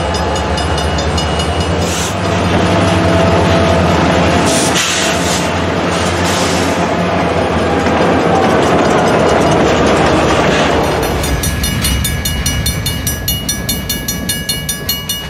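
A crossing bell rings steadily.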